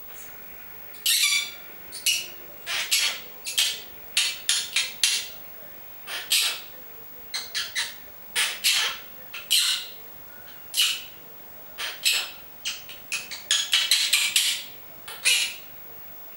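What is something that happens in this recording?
A small parrot chirps and squawks in short, shrill bursts close by.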